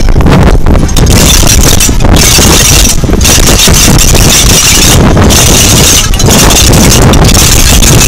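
Metal bells and jingles rattle in a parade crowd.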